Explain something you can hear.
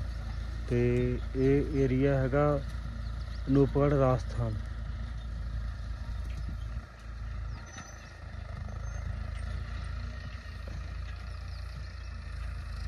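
A tractor engine hums faintly in the distance.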